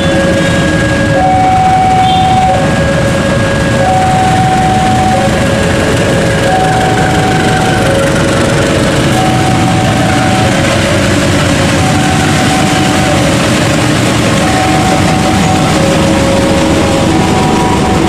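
A diesel locomotive rumbles loudly as it passes close by.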